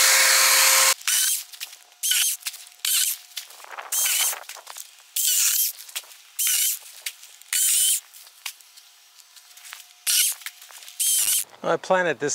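A power saw revs in short bursts.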